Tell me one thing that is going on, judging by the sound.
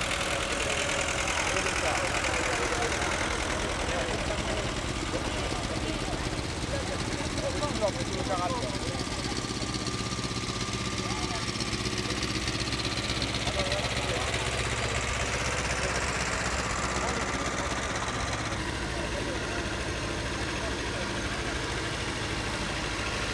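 A crowd of onlookers chatters in the background.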